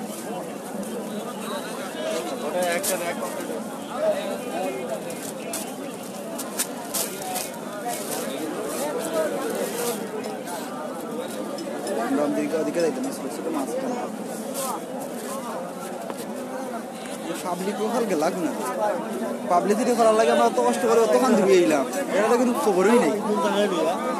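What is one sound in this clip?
Many men and women chatter all around.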